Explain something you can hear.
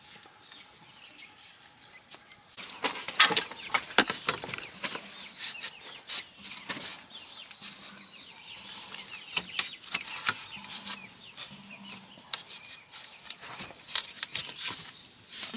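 Bamboo strips rustle and scrape over the ground.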